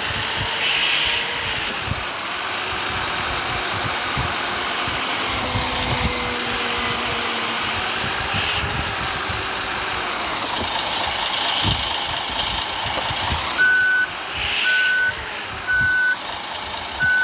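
A bus engine hums as the bus drives slowly.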